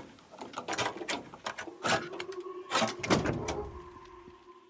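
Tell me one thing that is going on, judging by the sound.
Loose items clatter and rattle inside a car.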